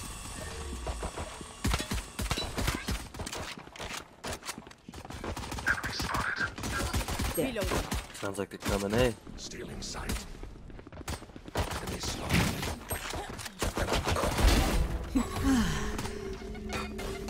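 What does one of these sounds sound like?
A pistol fires in quick, sharp bursts.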